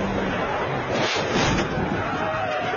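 A car crashes with a loud thud.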